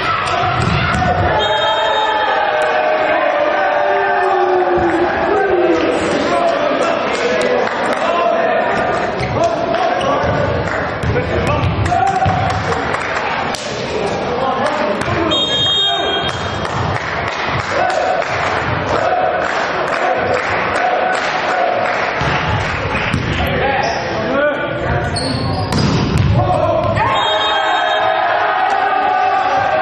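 A volleyball is struck hard in an echoing sports hall.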